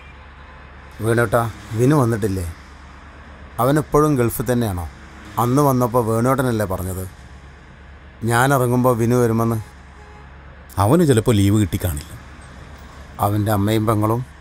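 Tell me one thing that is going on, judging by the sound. A man speaks with animation close by, inside a car.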